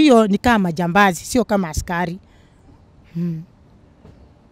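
A young woman speaks with feeling into a close microphone.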